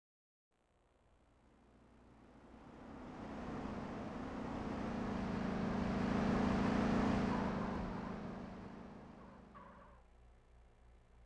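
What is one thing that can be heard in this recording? A car engine approaches, roars past and fades away.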